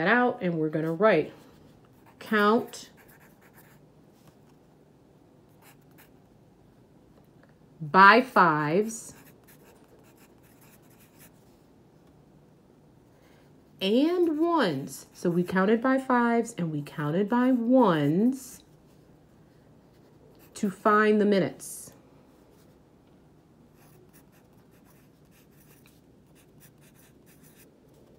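A pencil scratches on paper as it writes.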